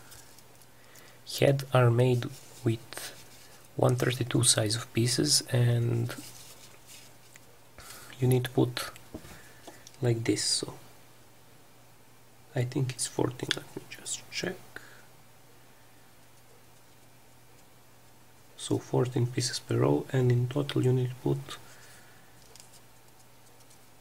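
Folded paper rustles and creaks softly as hands turn and press it.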